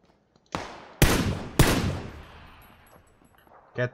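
A rifle fires two loud shots that echo away.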